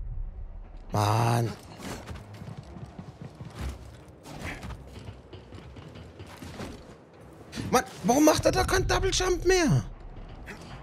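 A man grunts with effort.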